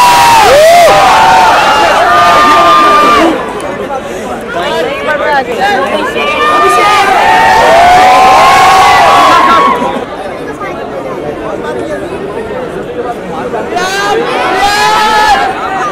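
Young men call out loudly nearby.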